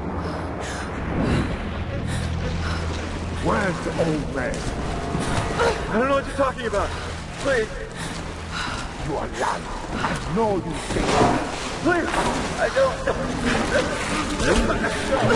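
Water splashes as someone wades steadily through it.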